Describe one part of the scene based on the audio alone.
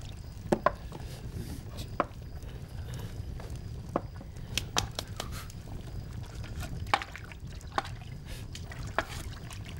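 A fire crackles in a stove.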